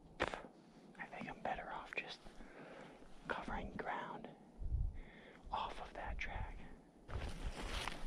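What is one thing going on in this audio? A young man talks quietly and calmly close by.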